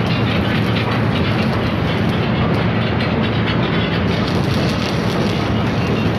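An electric welding arc crackles and sizzles.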